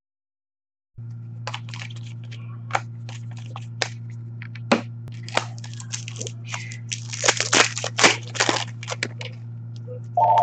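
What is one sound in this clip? Trading cards rustle and slap as hands shuffle them.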